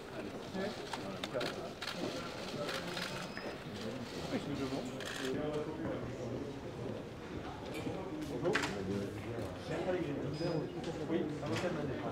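Men and women talk nearby.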